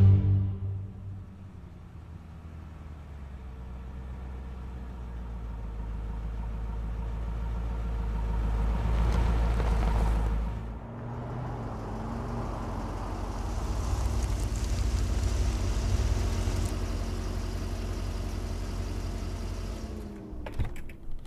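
A car engine rumbles as a car drives slowly closer.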